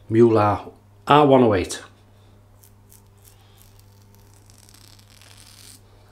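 A razor scrapes across stubble.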